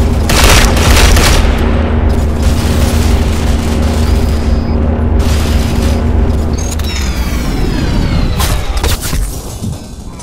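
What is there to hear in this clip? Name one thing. A rifle fires in loud, rapid bursts at close range.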